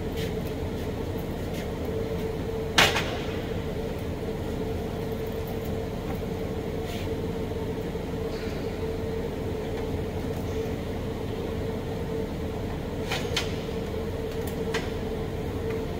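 Metal parts clink and clatter as a welding torch is handled.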